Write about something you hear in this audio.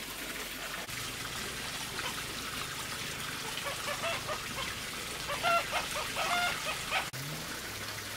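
Water pours from a pipe and splashes into a basin.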